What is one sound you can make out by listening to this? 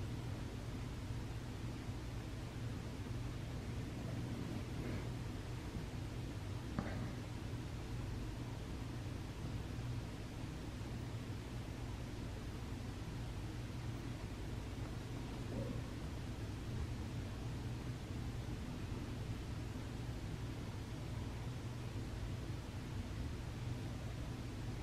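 Distant city traffic hums steadily in the open air.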